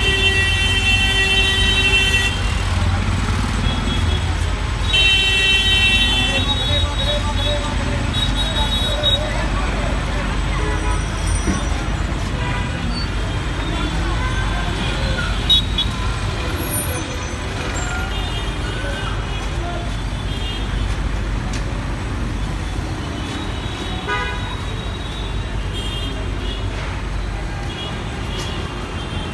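Vehicle horns honk repeatedly.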